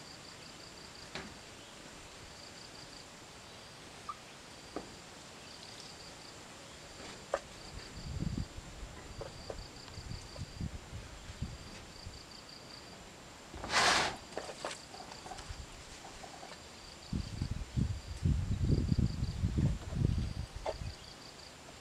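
Small fish are set down with soft taps on a metal sheet.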